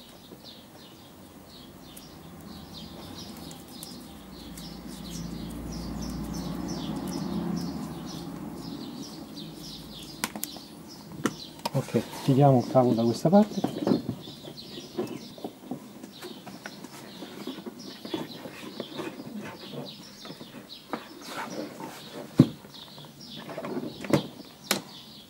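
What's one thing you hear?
Cables rustle and tap against plastic trim as they are handled close by.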